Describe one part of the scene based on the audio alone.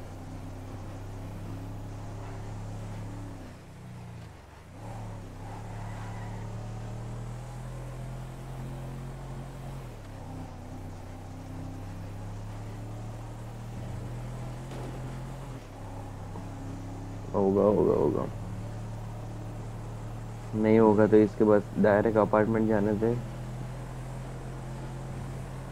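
A truck engine hums steadily as it drives.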